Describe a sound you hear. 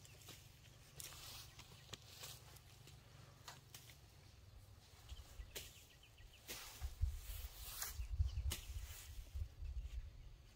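Grass rustles as a woman shifts and gets up from the ground.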